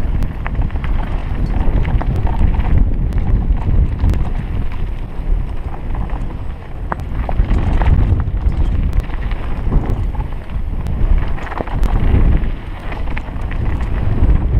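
Wind rushes and buffets loudly past.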